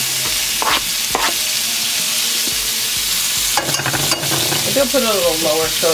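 Chopped onion sizzles steadily in hot oil.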